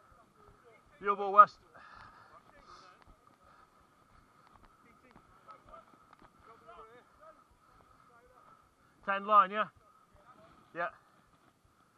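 A man shouts loudly close by, outdoors.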